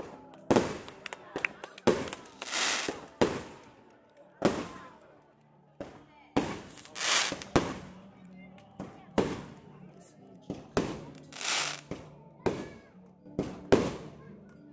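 Fireworks burst with loud booms and crackles.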